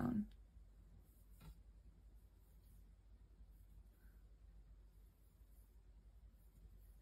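A crochet hook clicks softly against yarn.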